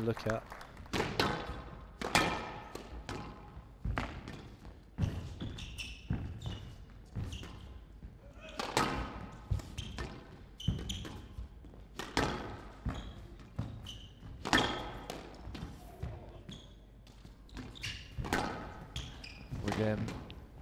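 Sneakers squeak on a floor.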